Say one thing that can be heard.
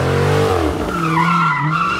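Tyres squeal and screech on pavement.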